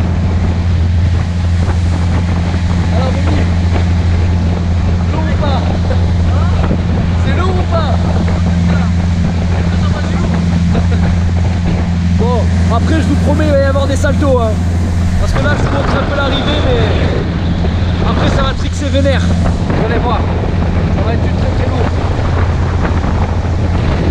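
Wind blows hard across the microphone.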